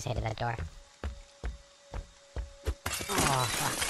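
Heavy footsteps thud on a wooden floor.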